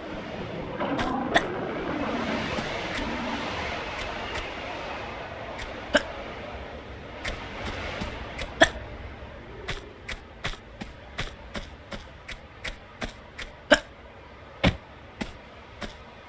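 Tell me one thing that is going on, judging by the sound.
Footsteps crunch on leaves and twigs.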